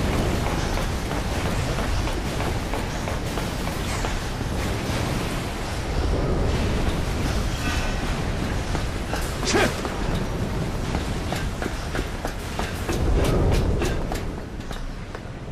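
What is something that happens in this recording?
Footsteps clank on a metal walkway.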